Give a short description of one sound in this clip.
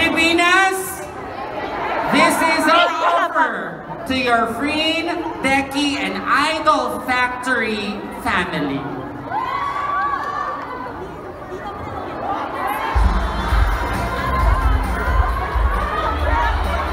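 A crowd cheers and screams.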